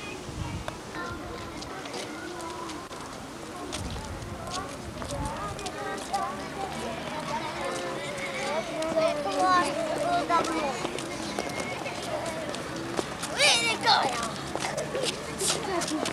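Many young children chatter and call out nearby.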